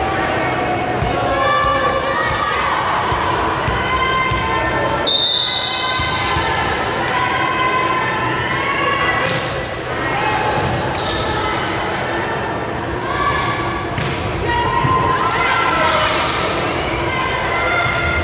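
Young women shout and call out across an echoing hall.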